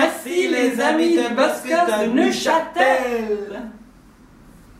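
A young woman sings loudly with animation.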